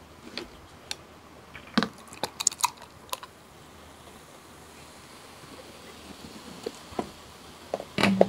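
Beer pours from a bottle into a glass and fizzes.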